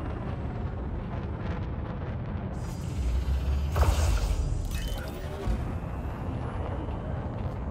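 A spacecraft engine rumbles low and steadily.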